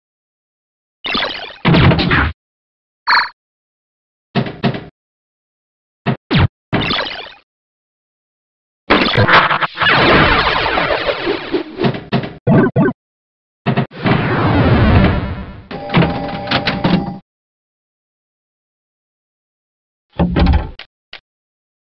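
Electronic pinball sound effects chime, whoosh and bleep in short bursts.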